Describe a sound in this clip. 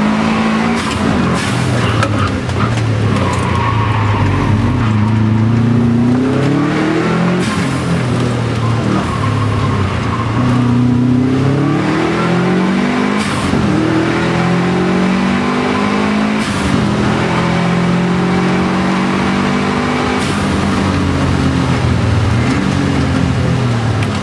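Windscreen wipers swish back and forth.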